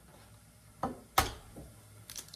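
An eggshell cracks against a bowl.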